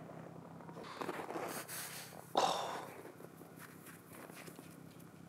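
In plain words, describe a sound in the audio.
Snow crunches as a hand packs it.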